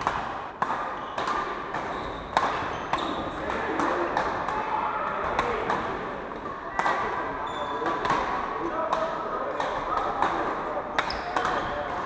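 Rackets hit shuttlecocks with sharp pops in a large echoing hall.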